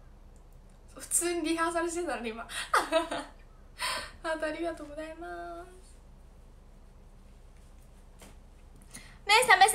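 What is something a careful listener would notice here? A young woman speaks cheerfully and close up, in short bursts.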